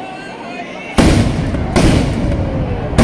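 Firecrackers burst with loud booming bangs.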